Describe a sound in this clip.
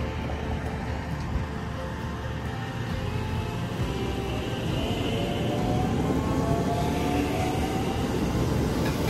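An electric train rumbles past close by, slowing down.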